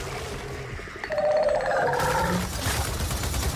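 A creature lets out a shrill, wavering screech.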